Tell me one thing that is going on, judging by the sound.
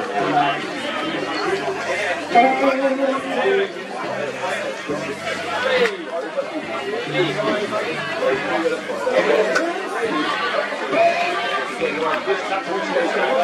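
A crowd of spectators chatters and calls out across an open outdoor field.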